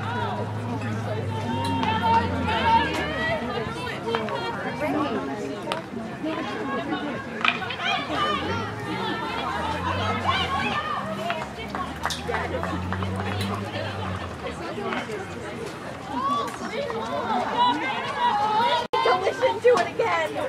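Spectators and players shout and call out across an open field.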